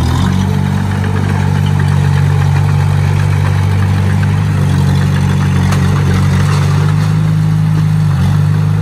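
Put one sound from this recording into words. Steel tracks of a bulldozer clank and squeak as it moves.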